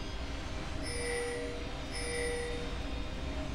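Video game chimes ring twice.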